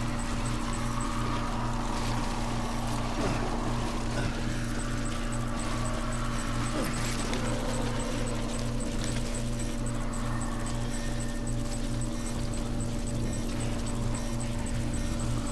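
Footsteps crunch over loose rocks.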